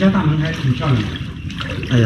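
A person wades through shallow water with splashing steps.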